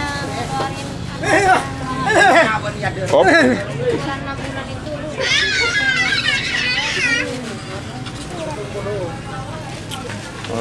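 Men and women chatter and call out loudly close by, in a lively crowd.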